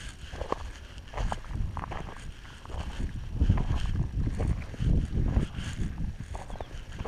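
Gravel crunches underfoot.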